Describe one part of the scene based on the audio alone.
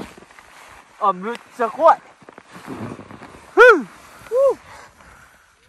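A man shouts with excitement close by.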